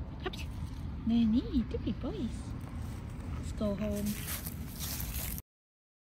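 A fabric bag rustles as a small dog climbs in.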